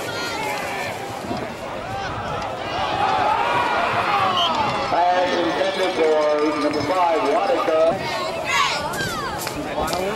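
A crowd cheers and shouts in outdoor stands.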